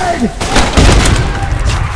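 An explosion booms with a deep roar.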